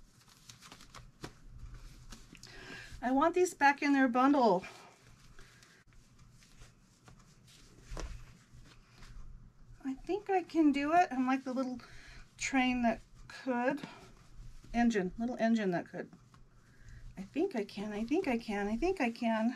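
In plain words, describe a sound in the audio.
Fabric rustles in a woman's hands.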